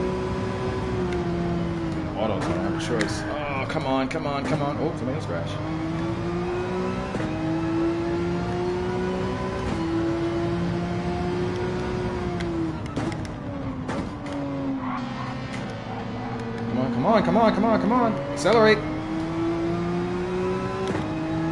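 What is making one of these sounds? A racing car engine roars, rising and falling in pitch as it shifts gears.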